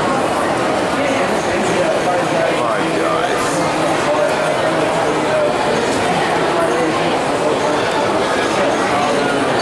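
A crowd of people chatters all around in a large echoing indoor space.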